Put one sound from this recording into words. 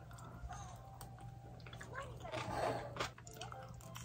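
A young woman chews and slurps food close by.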